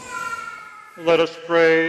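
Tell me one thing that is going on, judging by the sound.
An elderly man sings loudly through a microphone in a large echoing hall.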